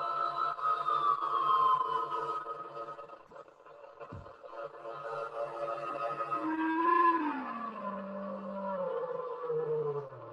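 Electronic synthesizer tones drone and slowly glide in pitch.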